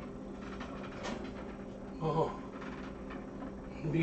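A metal pan scrapes on an oven rack.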